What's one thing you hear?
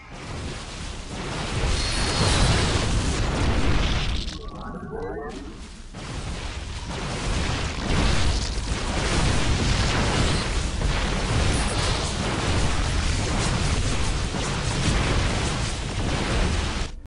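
Video game battle sounds of gunfire and blasts crackle steadily.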